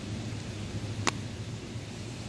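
A pen taps down onto paper.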